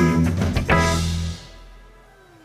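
A drum kit is played with loud hits and cymbal crashes.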